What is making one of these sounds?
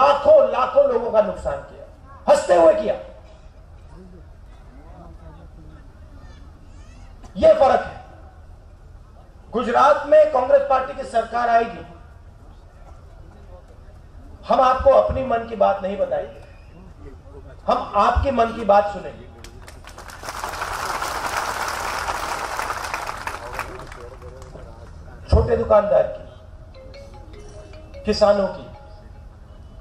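A man speaks forcefully into a microphone over loudspeakers outdoors, pausing between phrases.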